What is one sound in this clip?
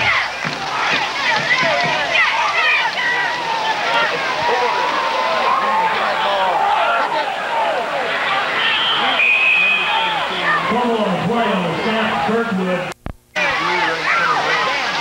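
A crowd of spectators cheers and shouts excitedly nearby, outdoors.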